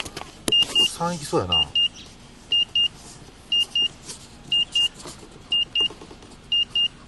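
A radiation meter beeps in quick high double beeps about once a second.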